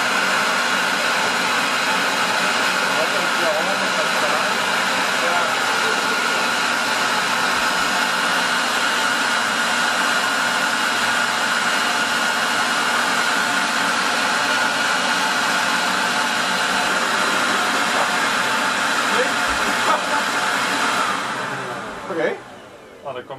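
A dust extractor vacuum roars steadily, then winds down.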